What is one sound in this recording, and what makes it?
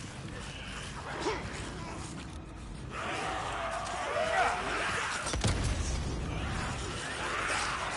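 A large horde of creatures shrieks and snarls close behind.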